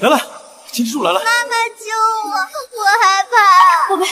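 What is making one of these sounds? A young child screams and cries in fear.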